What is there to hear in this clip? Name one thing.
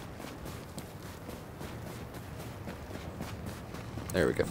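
Boots tread quickly across a hard floor.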